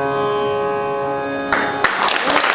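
An ensemble of sitars, violin and tabla holds a final chord.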